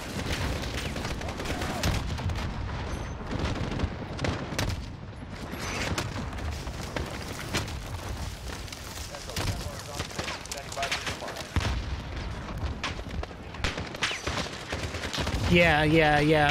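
Rifle shots crack sharply, again and again.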